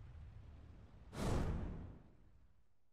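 A short rising whoosh swells and cuts off.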